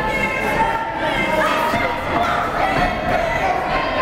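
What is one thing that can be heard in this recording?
Bodies thump on a wrestling ring mat.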